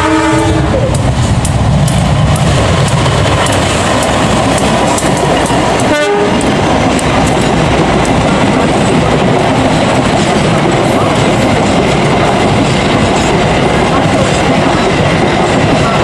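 Train wheels clatter rhythmically over the rails.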